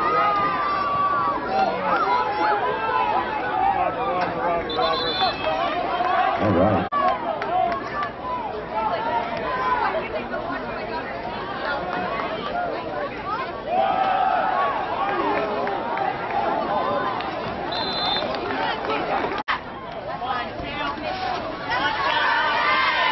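A crowd of young men and spectators shouts and cheers outdoors.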